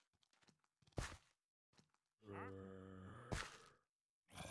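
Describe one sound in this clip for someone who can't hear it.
Crunching blocks of dirt are dug out with a shovel.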